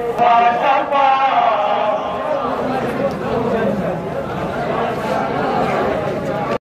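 A large crowd murmurs and calls out outdoors.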